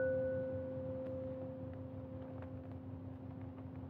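Light taps click softly on metal.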